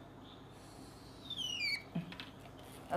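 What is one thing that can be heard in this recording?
A marker squeaks on a glass board.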